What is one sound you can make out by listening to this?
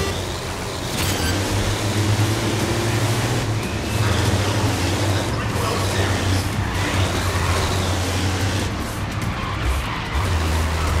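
Racing engines roar louder as the cars speed up.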